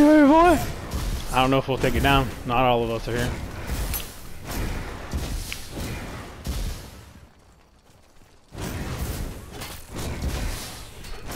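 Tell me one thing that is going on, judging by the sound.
Magic bolts zap and crackle in quick bursts.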